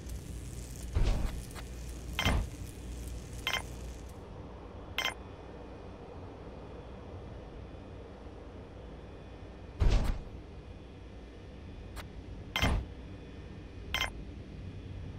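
Short game interface clicks and blips sound as buildings are placed.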